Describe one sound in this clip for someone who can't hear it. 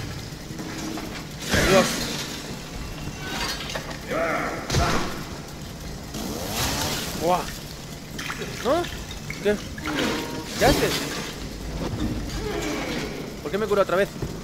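A chainsaw engine revs and roars.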